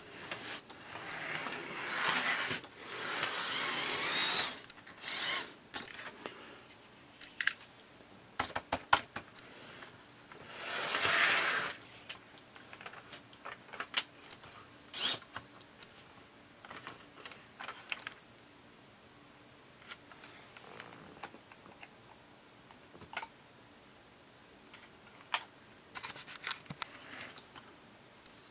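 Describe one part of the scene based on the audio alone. A toy train's plastic body clicks and clatters against the track as a hand handles it.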